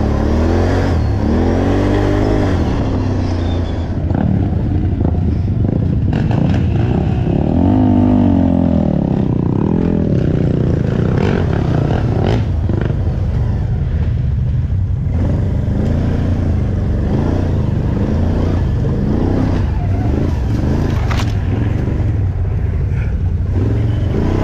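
A quad bike engine roars close by, revving up and down.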